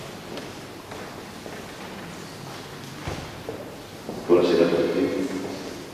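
Footsteps echo in a large, reverberant hall.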